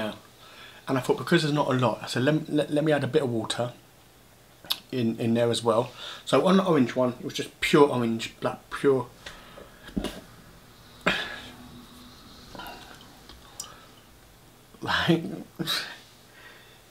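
A middle-aged man talks calmly and close to a microphone, with pauses.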